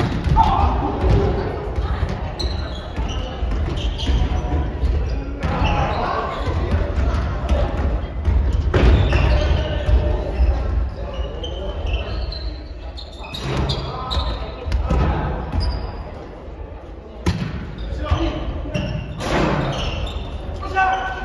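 A volleyball is struck by hands with a sharp slap.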